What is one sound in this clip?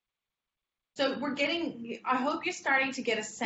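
A woman speaks calmly through a microphone in an online call.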